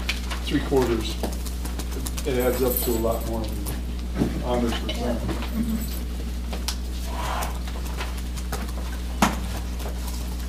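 Papers rustle as they are handled.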